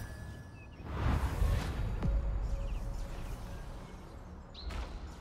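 A deep magical whoosh swells and rumbles.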